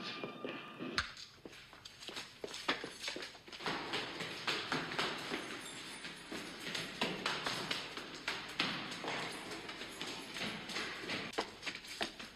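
Footsteps clatter quickly up a stairwell.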